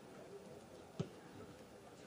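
A football is kicked with a dull thump in the open air.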